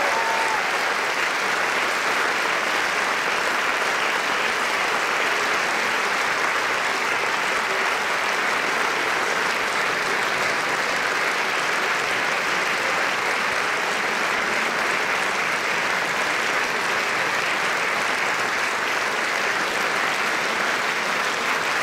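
A large theatre audience applauds.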